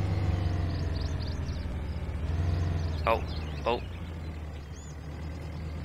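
An off-road vehicle's engine rumbles as it drives along a dirt track, then fades.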